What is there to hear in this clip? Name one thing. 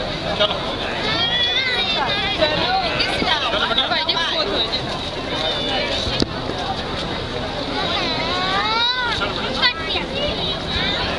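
Women laugh and squeal excitedly nearby.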